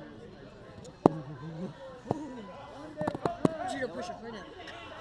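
Bodies thud onto a mat.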